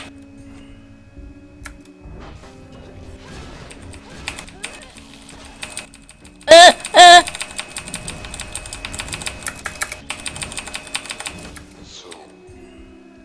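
Soft electronic music plays steadily.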